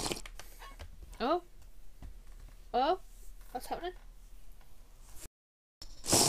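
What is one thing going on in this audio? Gulping sounds come as a potion is drunk.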